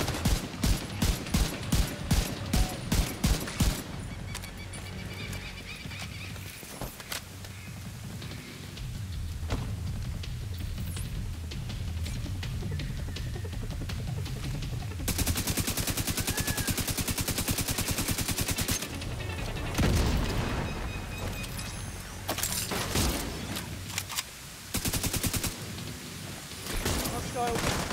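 Gunfire rings out in rapid bursts.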